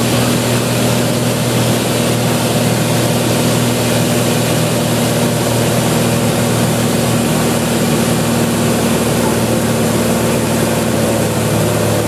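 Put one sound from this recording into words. A helicopter's engine and rotor drone loudly and steadily from close by.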